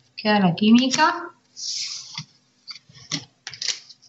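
A card is laid down on a cloth-covered table.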